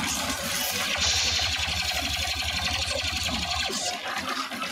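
A rapid-fire blaster shoots in quick bursts.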